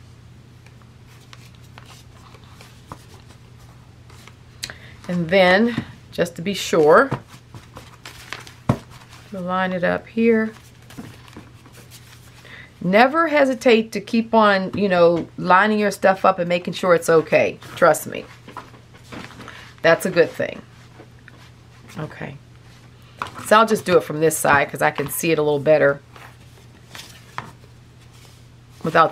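Hands handle and fold paper, which rustles softly close by.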